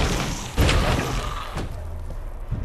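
A fiery explosion booms close by.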